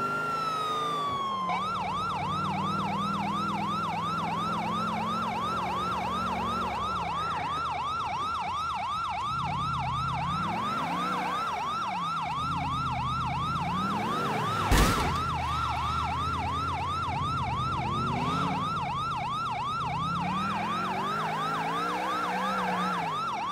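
A car engine revs up and down as the car speeds along.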